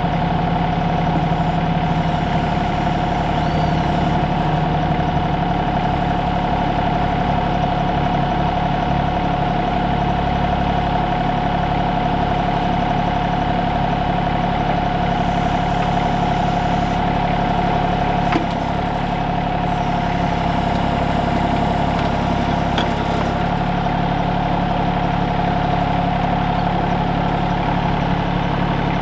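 A small diesel engine runs steadily close by.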